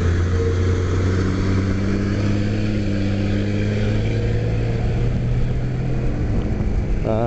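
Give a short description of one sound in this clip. A school bus engine rumbles close by, then falls behind.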